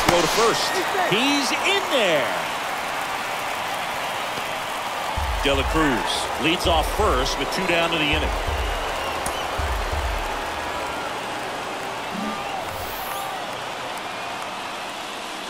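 A large crowd murmurs and cheers in an open stadium.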